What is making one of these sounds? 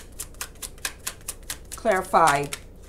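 Playing cards flick and riffle as they are shuffled by hand.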